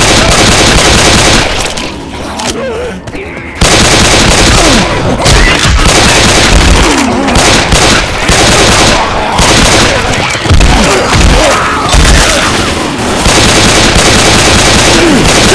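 Zombies snarl and growl nearby.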